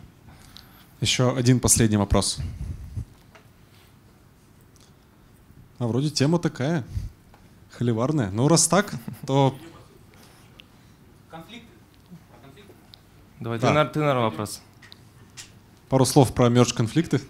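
A man speaks over a microphone in short phrases with pauses.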